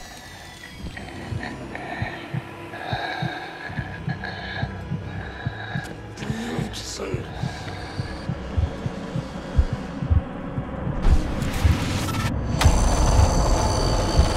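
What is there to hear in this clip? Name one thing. A creature snarls and grunts close by.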